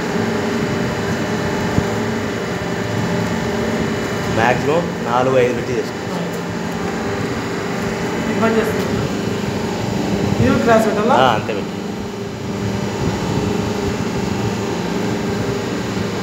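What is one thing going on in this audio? A machine hums steadily.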